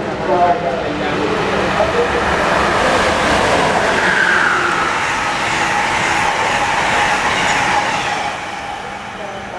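A train rushes past at speed with a loud roar, then fades.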